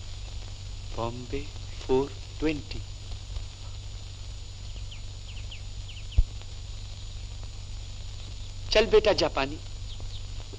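A young man hums a playful tune close by.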